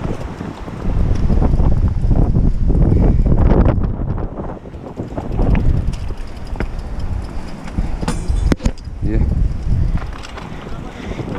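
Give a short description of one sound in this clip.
Bicycle tyres rattle and crunch over a rocky dirt trail.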